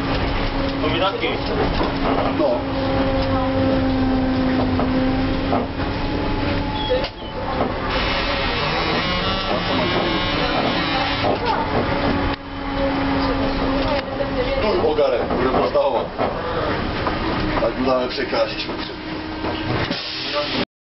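A tram motor hums and whines steadily.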